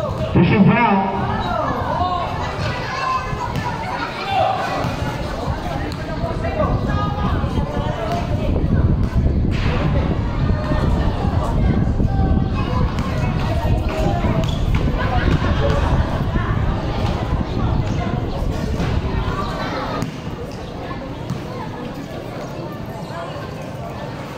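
A large crowd of spectators chatters and cheers loudly outdoors.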